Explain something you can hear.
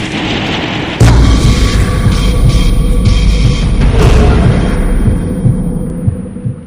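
A heavy crash booms with a deep rumble.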